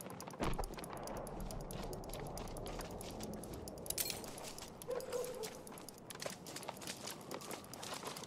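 Footsteps crunch on dirt as a soldier walks.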